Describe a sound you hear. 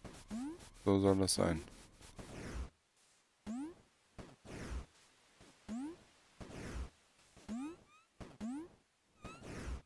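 A video game's pixel character jumps with a short rising chirp effect.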